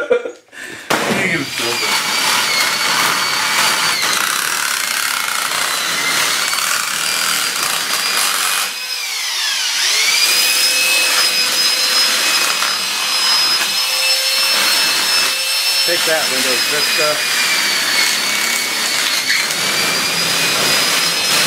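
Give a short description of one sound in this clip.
A power drill whines steadily as it bores.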